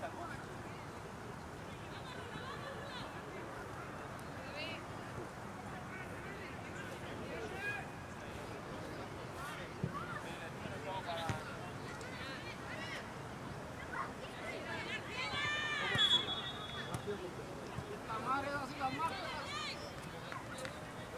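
Young players and spectators shout and call out across an open field outdoors.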